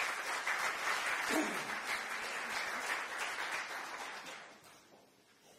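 An audience applauds in a hall.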